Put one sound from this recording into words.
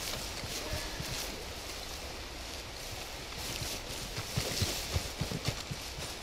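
Footsteps swish and thud through tall grass.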